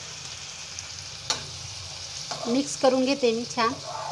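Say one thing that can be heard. A spatula scrapes and clatters against a frying pan.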